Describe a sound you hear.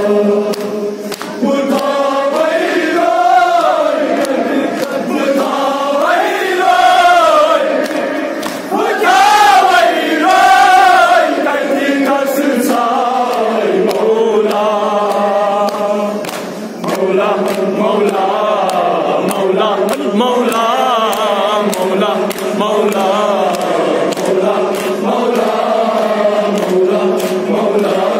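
A crowd of men chants along in unison.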